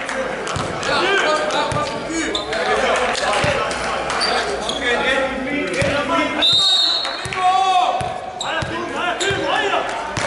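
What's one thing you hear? A volleyball is struck with dull thumps.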